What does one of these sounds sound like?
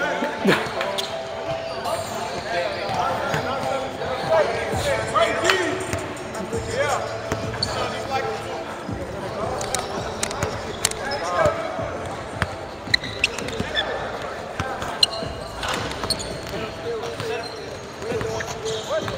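Several young men talk and call out across a large echoing gym.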